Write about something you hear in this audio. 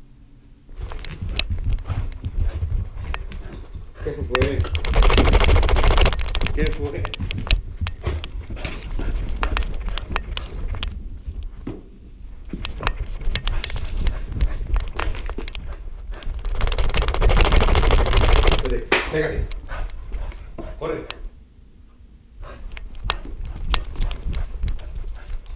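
A dog's paws thud and patter as it runs on carpet.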